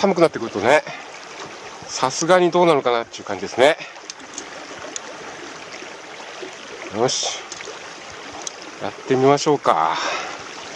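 A river flows steadily close by.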